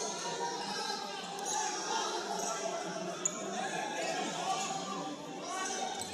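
Sneakers squeak on a hard indoor court in a large echoing hall.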